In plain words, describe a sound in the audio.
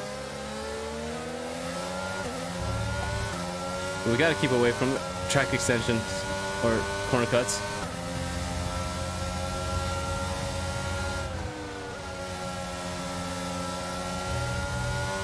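A racing car engine whines steadily, rising in pitch and dropping with each gear change.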